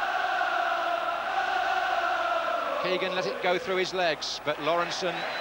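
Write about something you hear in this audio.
A large crowd chants and roars in a stadium.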